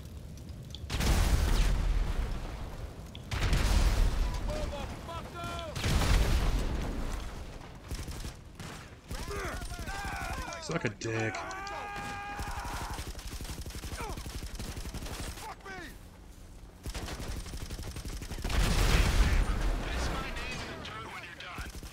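Explosions boom loudly, one after another.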